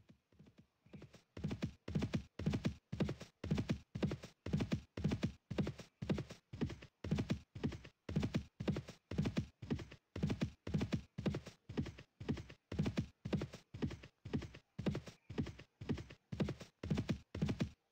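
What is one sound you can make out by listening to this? Horse hooves thud in a steady, quick rhythm.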